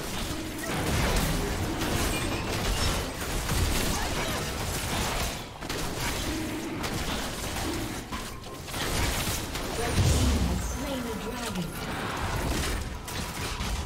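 Magic spells crackle and burst in a fantasy battle.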